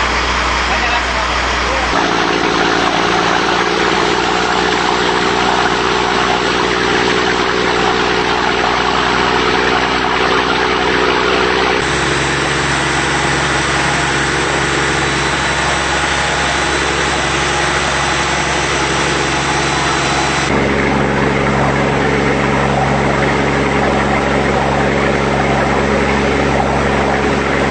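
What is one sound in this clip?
Water rushes and splashes along a boat's hull.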